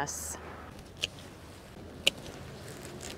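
Garden shears snip through flower stems.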